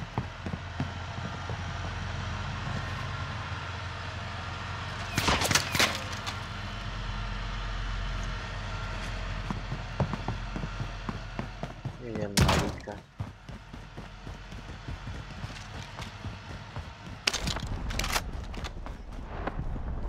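Footsteps thud on hard floors and paving.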